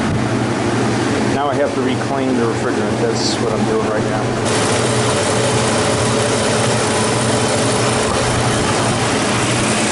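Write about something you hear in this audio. A machine hums steadily and close by.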